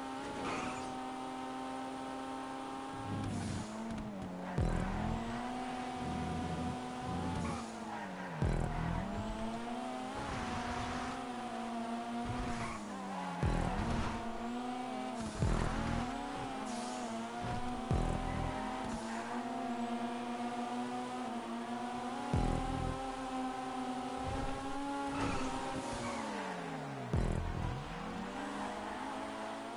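A car engine revs high and drops sharply as gears shift.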